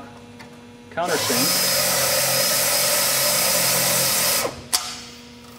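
A small power drill whirs steadily at high speed.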